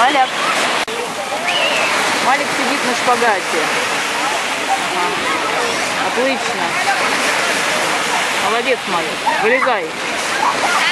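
Children shout and call out nearby.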